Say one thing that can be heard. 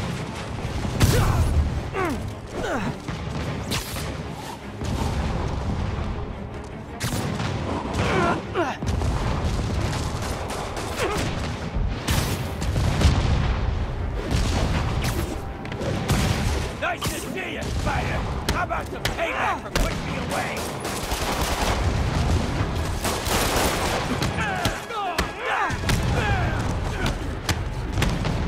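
Heavy punches and impacts thud during a fight.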